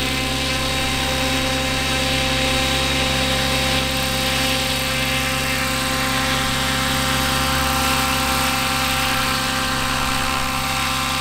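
A model helicopter's engine whines steadily close by.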